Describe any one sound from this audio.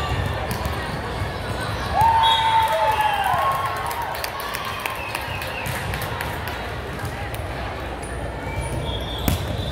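Volleyballs thump off hands and the floor in a large echoing hall.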